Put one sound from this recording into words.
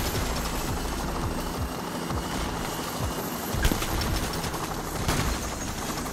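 A helicopter hovers overhead with thumping rotor blades.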